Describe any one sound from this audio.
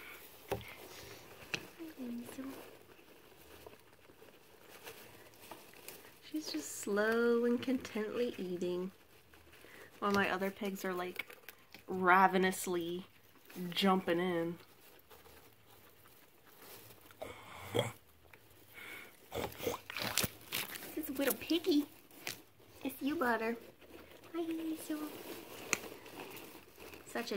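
A small animal munches dry hay with soft, quick crunches.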